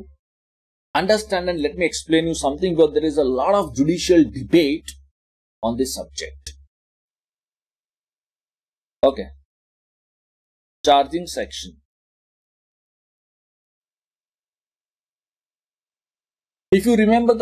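A man speaks calmly into a close microphone, pausing often.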